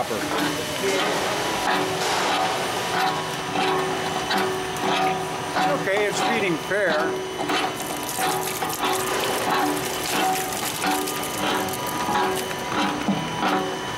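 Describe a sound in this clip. Material crunches and crackles as it is chopped in the machine.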